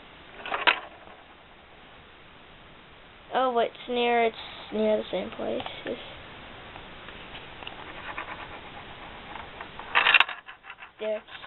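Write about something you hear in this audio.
A small ball rolls and rattles along plastic tracks.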